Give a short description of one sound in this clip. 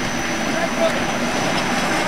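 A diesel locomotive engine idles nearby.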